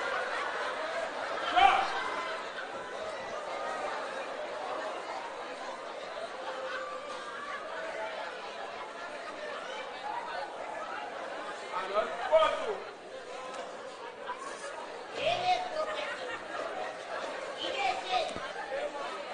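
Men and women speak and call out from a distance on a stage, with a slight echo.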